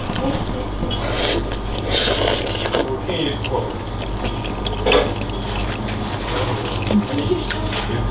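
A young woman slurps noodles loudly.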